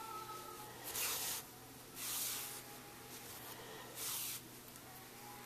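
Yarn rustles and swishes as it is pulled through knitted fabric, close by.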